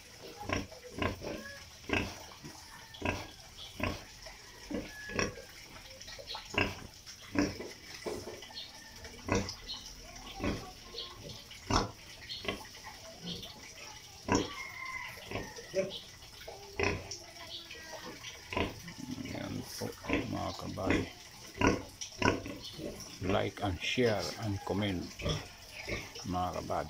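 A pig snorts and grunts close by.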